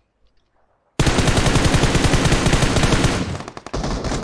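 Rapid gunfire rattles loudly in quick bursts.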